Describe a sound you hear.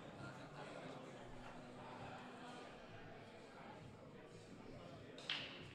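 A crowd murmurs quietly in the background.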